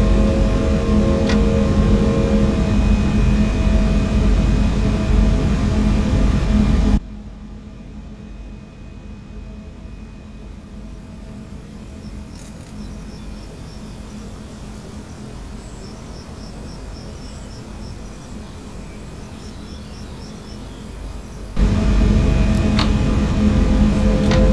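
A train's electric motor hums loudly and steadily from inside the cab.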